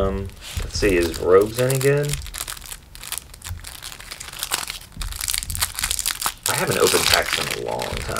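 A plastic card sleeve crinkles and rustles between fingers.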